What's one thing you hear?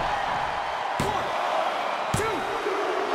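A referee slaps the mat while counting.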